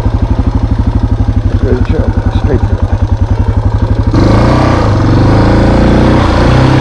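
A motorbike engine putters and revs up loudly.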